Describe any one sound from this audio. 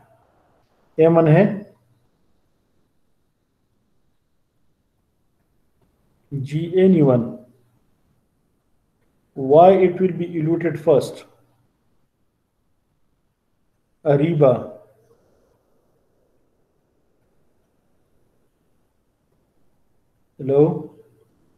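A man speaks calmly in short phrases with long pauses, heard through an online call.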